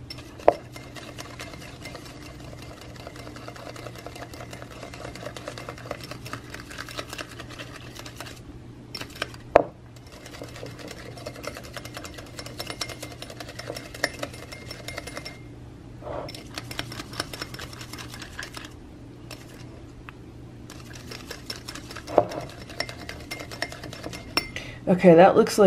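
A wire whisk beats liquid briskly in a ceramic bowl, clinking against its sides.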